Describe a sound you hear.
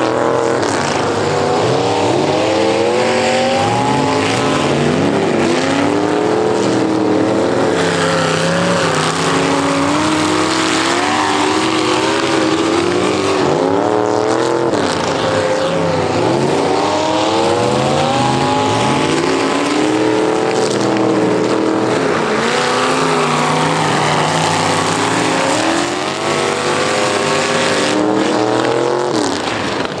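Several car engines roar and rev loudly outdoors.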